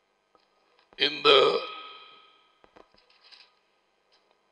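A man speaks briefly and loudly into a close microphone.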